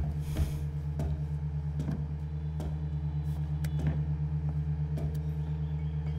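Footsteps thud slowly down wooden stairs.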